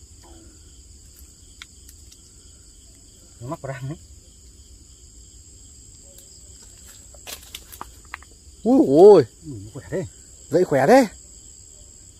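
Dry leaves rustle and crackle as a man handles the ground close by.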